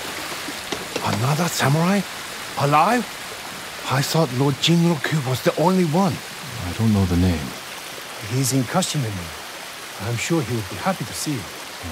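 A man speaks calmly with a rough voice.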